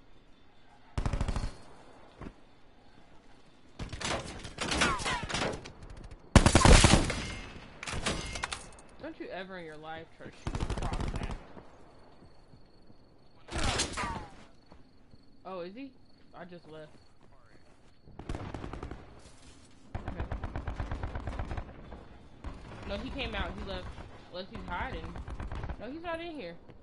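A rifle fires loud rapid bursts of shots.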